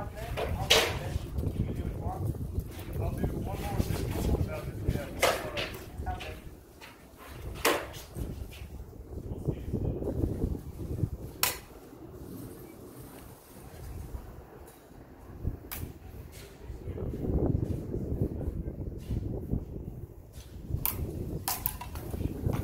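Swords clack together sharply now and then.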